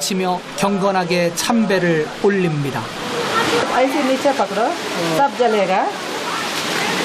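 People talk and murmur nearby outdoors.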